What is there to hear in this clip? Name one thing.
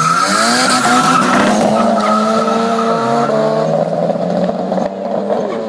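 A car engine roars loudly, its pitch rising and then dropping as it shifts gear.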